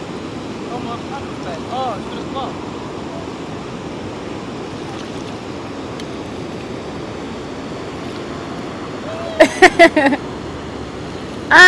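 Paddles dip and splash in calm water.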